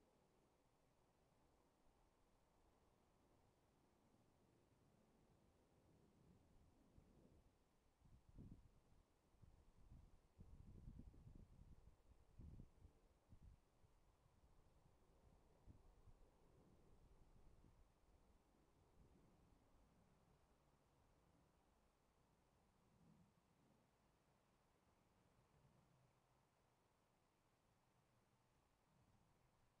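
Wind rumbles outdoors across the microphone.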